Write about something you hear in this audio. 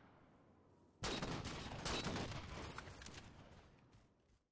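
A rifle fires a single loud shot that echoes and slowly fades.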